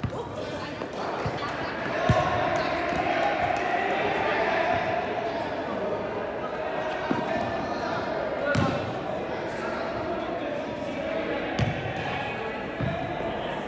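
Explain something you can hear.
The sounds echo in a large indoor hall.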